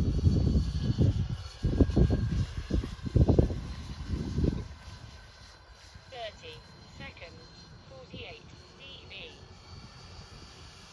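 A small propeller plane drones faintly far overhead.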